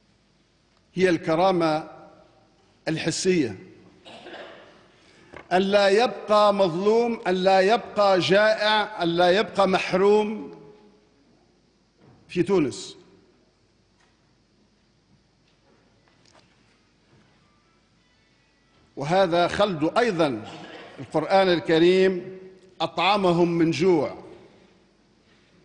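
A middle-aged man speaks calmly and formally into a microphone, with long pauses between phrases.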